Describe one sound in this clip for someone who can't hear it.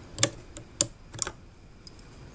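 A screwdriver clicks and scrapes against metal parts.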